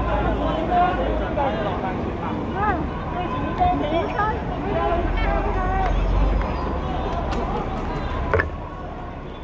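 A crowd of men and women shout and talk excitedly nearby, outdoors.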